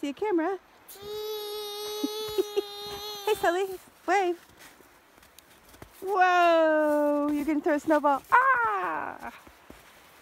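Young boys shout with long drawn-out calls.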